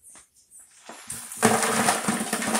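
Soil pours with a loud rushing hiss.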